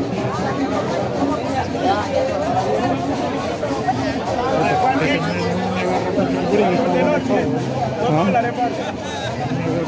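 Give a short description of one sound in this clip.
A crowd of men and women talks loudly all around, outdoors.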